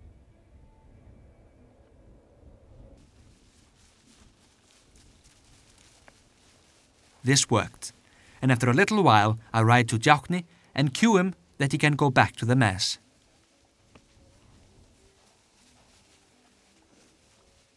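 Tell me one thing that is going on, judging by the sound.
Horses' hooves thud as they gallop over soft grass.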